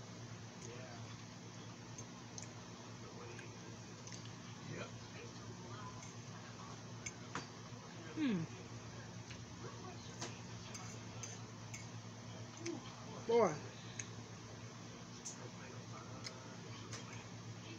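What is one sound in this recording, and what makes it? A fork scrapes and clinks on a plate.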